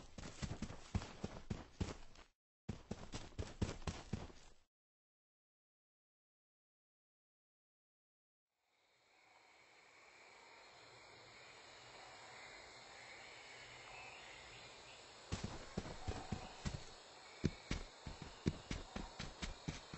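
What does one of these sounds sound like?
Quick footsteps thud on grass and sand.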